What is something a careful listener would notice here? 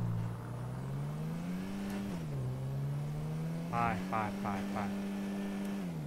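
A car engine hums steadily, its pitch rising and dropping with gear changes.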